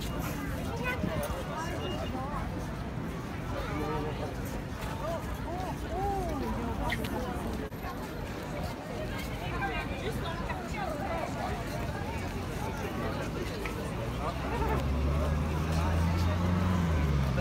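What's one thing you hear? A crowd chatters outdoors nearby.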